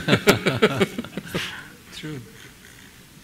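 A middle-aged man laughs heartily close by.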